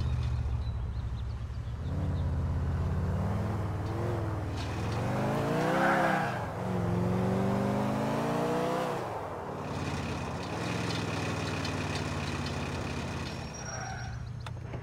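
A car engine revs and roars as the car speeds along.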